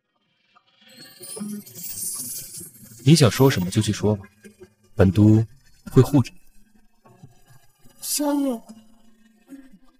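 A young man speaks calmly and quietly nearby.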